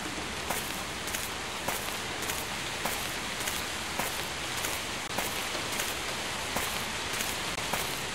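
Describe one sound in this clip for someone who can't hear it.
Footsteps crunch steadily on a gravel path.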